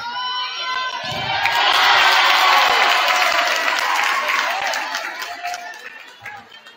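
A crowd cheers and claps loudly, then fades.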